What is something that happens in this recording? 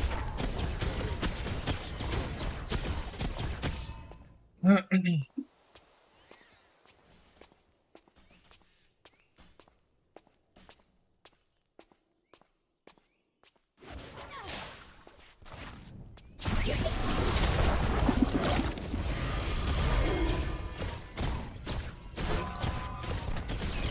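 Game spells whoosh and hit during a fight.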